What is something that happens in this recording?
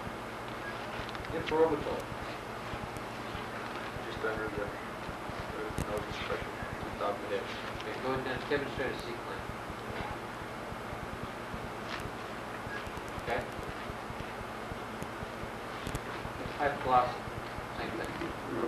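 A man speaks calmly, now and then.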